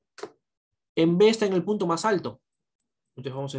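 A young man speaks calmly through a microphone on an online call.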